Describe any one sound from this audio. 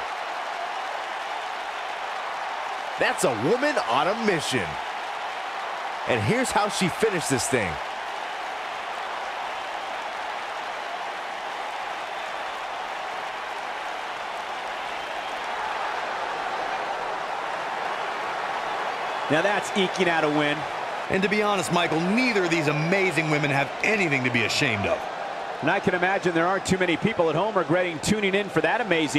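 A large crowd roars and cheers steadily in a big arena.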